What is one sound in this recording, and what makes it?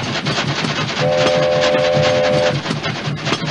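A steam whistle blows.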